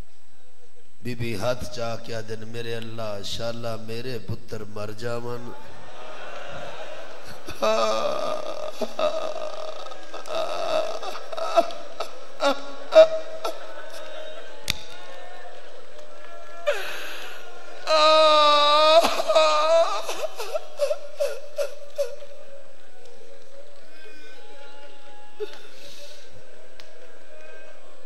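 A middle-aged man chants and wails emotionally through a microphone in a reverberant hall.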